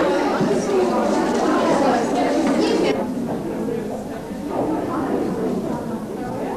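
A crowd of men and women chatter.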